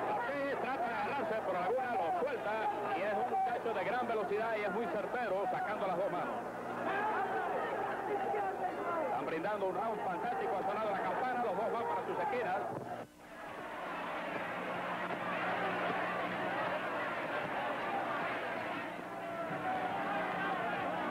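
A crowd cheers and roars in a large hall.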